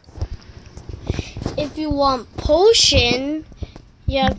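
A young boy speaks with animation close to a phone microphone.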